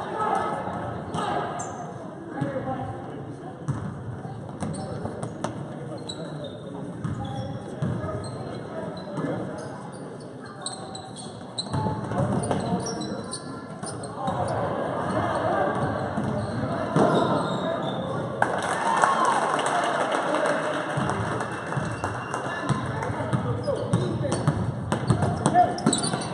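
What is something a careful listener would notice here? A basketball bounces on a hard wooden floor in a large echoing gym.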